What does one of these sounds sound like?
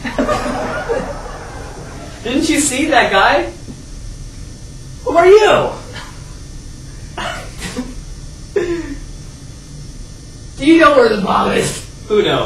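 A second young man replies excitedly, close by.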